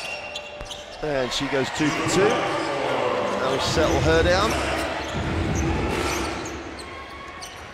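A crowd cheers loudly in a large echoing arena.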